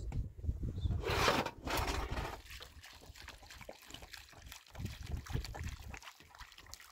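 Water splashes from a plastic can onto wet cloth in a basin.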